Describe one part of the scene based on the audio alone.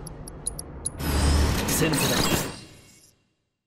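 A blade slashes through the air with a sharp swoosh.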